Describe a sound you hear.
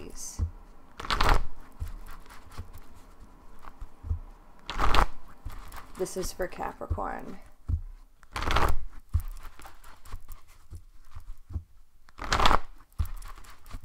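Playing cards shuffle and riffle in quick bursts.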